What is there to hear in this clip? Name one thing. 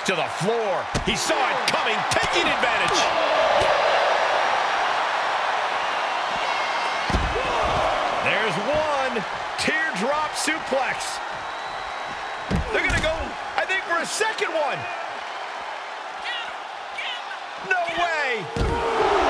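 Heavy bodies slam hard against a wrestling ring and floor.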